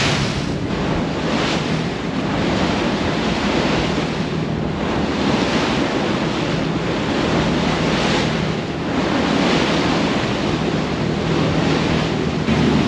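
Wind blows hard across the open sea.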